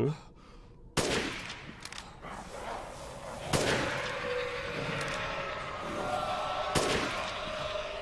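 A rifle fires sharp shots, with echoing ringing after them.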